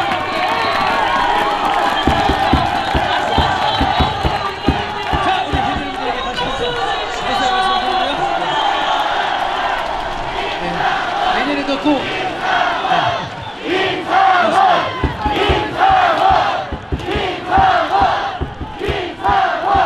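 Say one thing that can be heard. A young man talks with animation through a microphone over loudspeakers.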